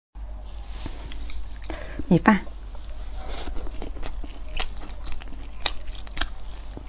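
A young woman chews food with soft, wet mouth sounds.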